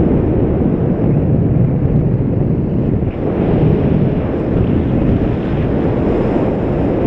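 Strong wind rushes and buffets loudly outdoors.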